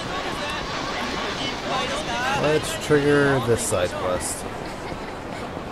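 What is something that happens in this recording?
A busy street crowd murmurs and chatters.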